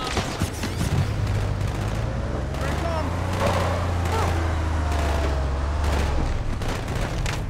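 A vehicle engine rumbles and revs as it drives.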